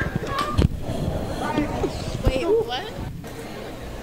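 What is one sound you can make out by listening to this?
A young woman speaks and laughs close by.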